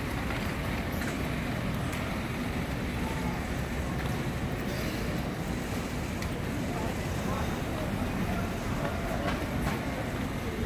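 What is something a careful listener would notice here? Busy street noise hums steadily outdoors.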